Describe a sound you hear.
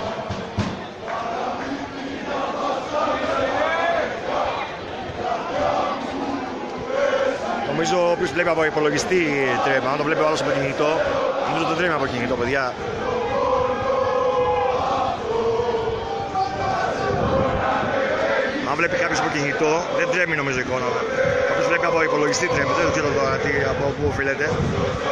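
A large crowd chants and sings loudly in an open stadium.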